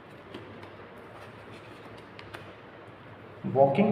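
A card is laid down on a cloth-covered table.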